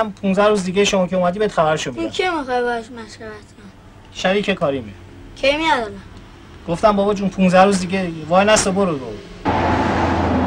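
A boy speaks quietly nearby.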